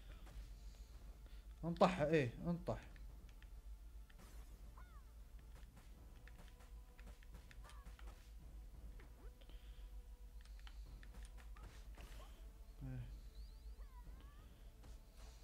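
Punches and kicks land with sharp thuds in a video game.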